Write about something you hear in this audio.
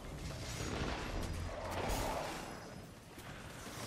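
Gunfire and explosions crackle in a video game battle.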